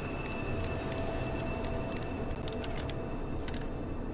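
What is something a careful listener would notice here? A padlock snaps open with a metallic clack.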